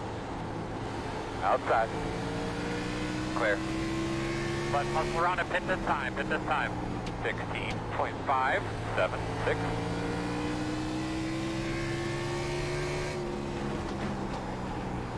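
A racing car engine drones steadily, its pitch slowly rising and dropping.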